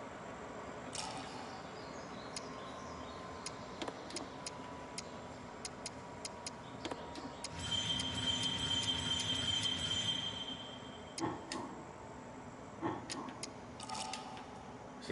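Menu selection clicks and blips sound repeatedly.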